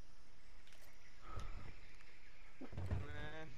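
Footsteps thud softly on the ground.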